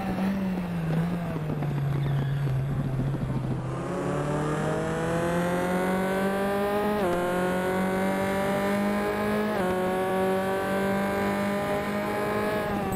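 A racing car engine roars, its pitch climbing steadily and dropping sharply with each gear change.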